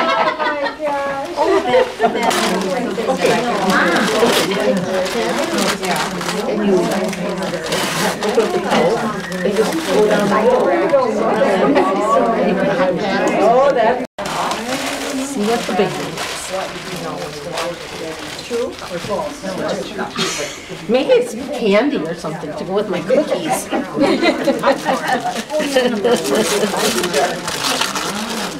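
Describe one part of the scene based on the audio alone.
Several women chat and laugh nearby in a room.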